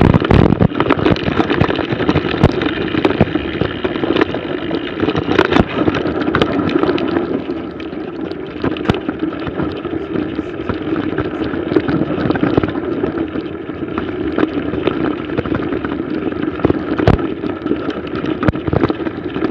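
A bike's frame rattles and knocks over bumps.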